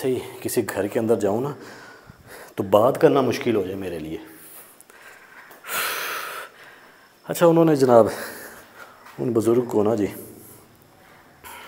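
A young man sings close by, in long drawn-out phrases.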